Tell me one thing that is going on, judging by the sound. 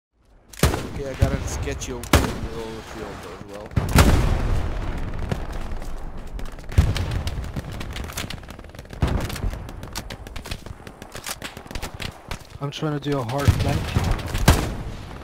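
Explosions boom in the distance, one after another.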